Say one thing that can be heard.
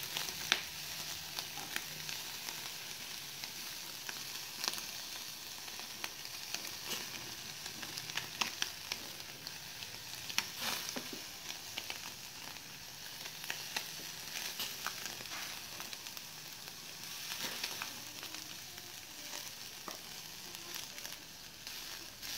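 Charcoal crackles and pops in a small stove.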